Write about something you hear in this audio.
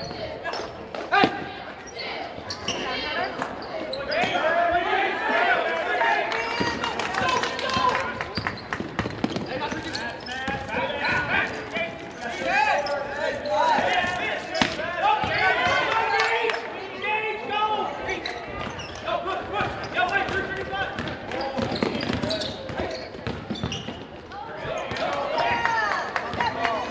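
A basketball bounces on the floor with hollow thuds.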